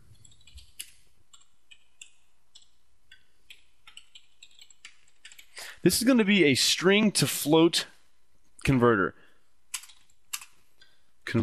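Computer keys click softly as someone types.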